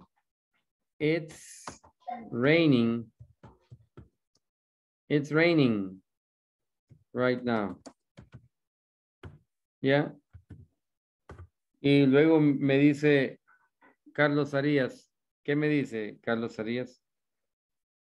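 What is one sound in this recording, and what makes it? A man speaks clearly and calmly, as if teaching, over an online call.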